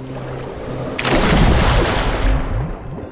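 Water splashes hard as a body plunges in.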